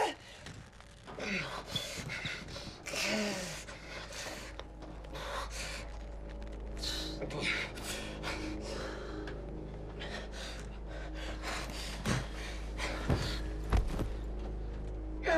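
A second man groans and gasps in pain.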